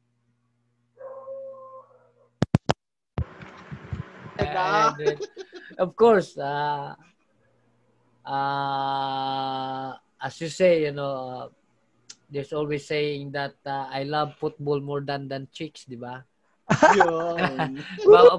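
A man speaks and laughs with animation over an online call, close to a microphone.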